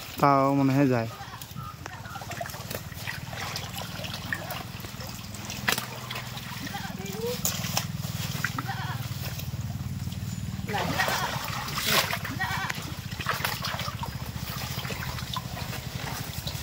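Water sloshes and splashes.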